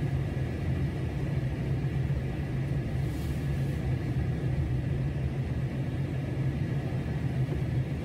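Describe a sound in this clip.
A car cruises along an asphalt road, its engine and tyres droning from inside.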